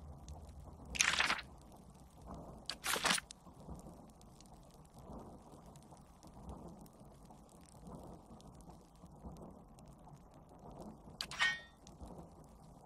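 Short swishing clicks of a game menu sound now and then.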